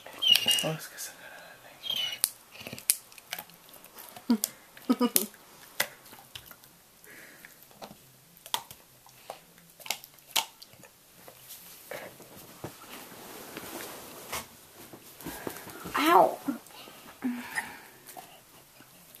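A dog chews noisily on a bone.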